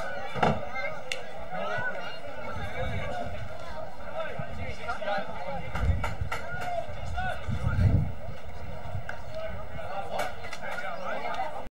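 Men shout and call to each other across an open field.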